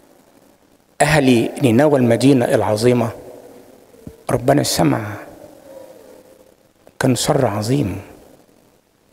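An elderly man preaches with animation into a microphone, in bursts with pauses, in an echoing hall.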